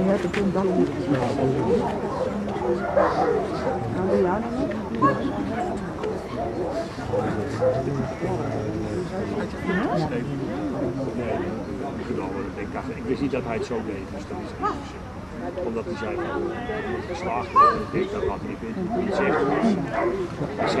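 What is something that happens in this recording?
A woman gives commands to a dog in a calm, firm voice outdoors.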